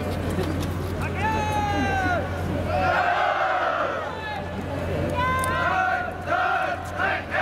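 A man shouts commands to marching ranks.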